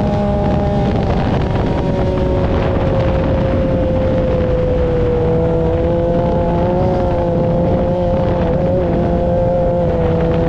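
Wind and rumble buffet an open vehicle driving over sand.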